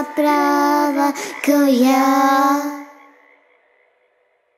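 An elderly man sings a long, held note loudly through a microphone, then the sound fades out.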